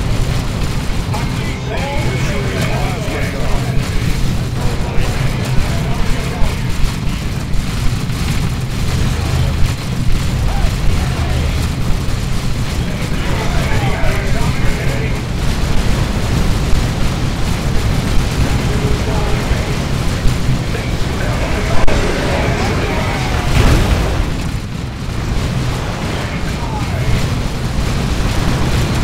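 Guns fire in rapid, rattling bursts.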